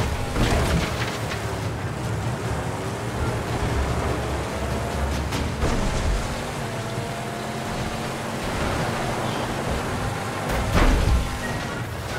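A vehicle engine rumbles loudly and steadily.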